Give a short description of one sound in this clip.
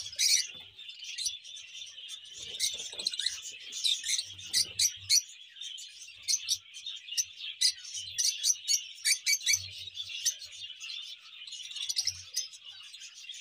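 Many small parrots chirp and screech shrilly and constantly.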